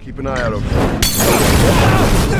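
A firebomb bursts with a loud roaring whoosh.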